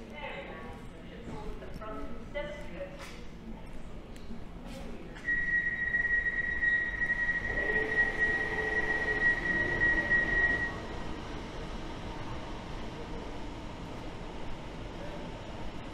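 An electric train hums and whines as it pulls away along the platform.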